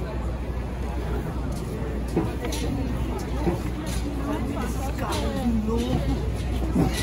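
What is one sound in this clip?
A crowd of people chatters nearby on a busy street outdoors.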